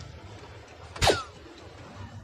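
A dart strikes an electronic dartboard with a sharp thud.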